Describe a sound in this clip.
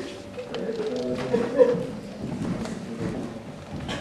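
A young woman speaks on a stage in an echoing hall.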